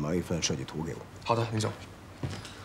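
An older man speaks calmly nearby.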